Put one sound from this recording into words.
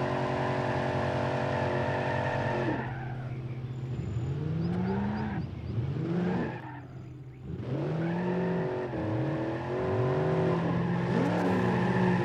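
Metal crunches as cars collide.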